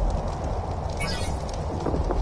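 A short bright chime rings out.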